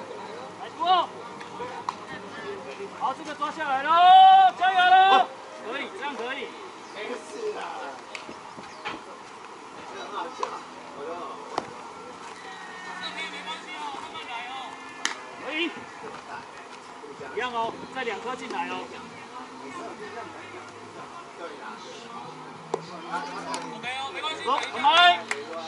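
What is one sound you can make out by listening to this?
Men shout and call out nearby, outdoors.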